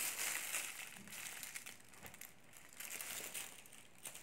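A young woman bites and chews food close by.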